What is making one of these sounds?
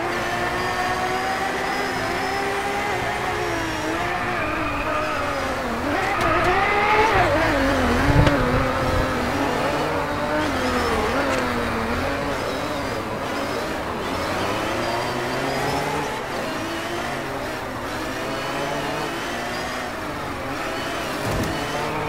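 A racing car engine revs loudly, rising and falling in pitch.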